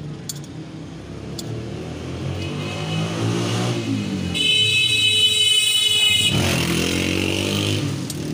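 A spoon scrapes a plate.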